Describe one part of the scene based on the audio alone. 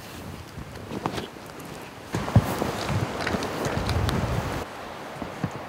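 Footsteps crunch on dry twigs and forest litter.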